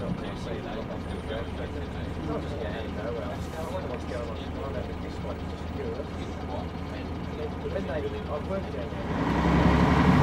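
A bus engine idles with a low hum.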